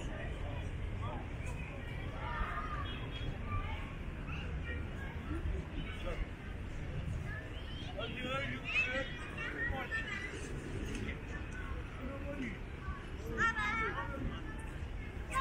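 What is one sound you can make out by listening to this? Children shout and chatter at a distance outdoors.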